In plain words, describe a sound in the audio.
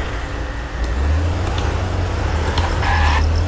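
A car engine rumbles as the car drives off.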